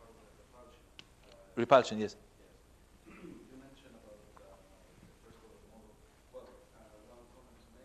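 An elderly man speaks quietly into a microphone, pausing often.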